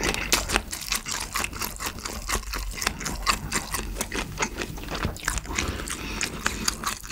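A young man chews food loudly and wetly close to a microphone.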